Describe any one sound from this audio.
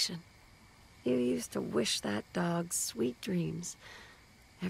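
A woman speaks calmly and softly.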